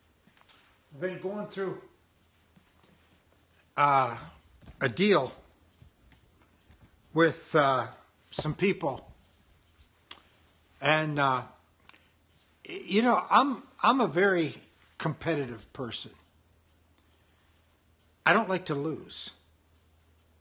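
An older man speaks calmly and close up, in short bursts with pauses.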